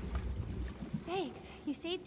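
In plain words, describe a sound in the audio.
A second young woman speaks warmly in reply.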